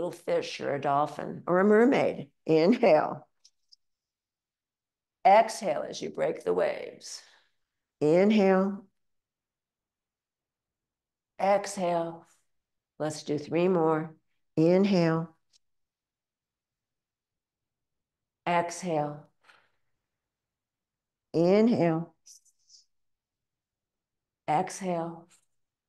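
An elderly woman speaks calmly and clearly into a close microphone, giving instructions in short phrases.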